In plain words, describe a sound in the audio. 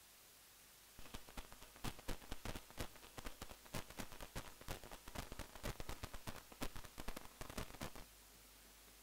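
Drums are beaten faintly in the distance.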